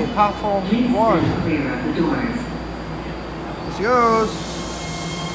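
A chime sounds twice from a train.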